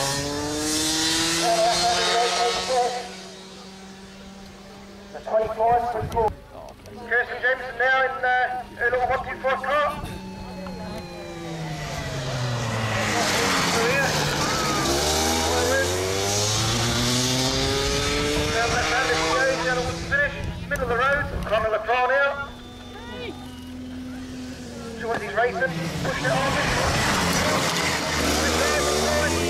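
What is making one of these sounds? Go-kart engines whine loudly as they race past, rising and falling in pitch.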